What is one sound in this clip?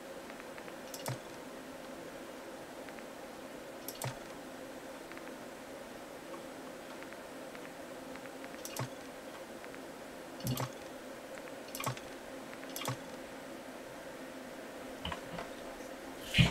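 Short game menu clicks sound now and then.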